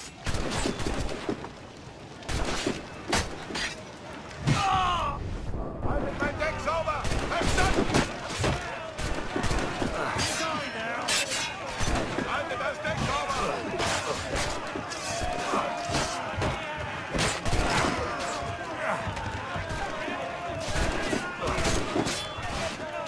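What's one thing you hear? Swords clash and clang in a fight.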